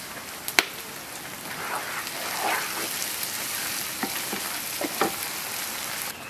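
A wooden spoon scrapes against a metal pan.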